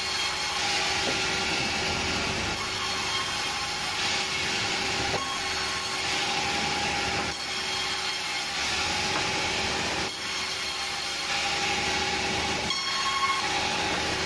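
Wooden boards knock and thud as they are lifted and dropped.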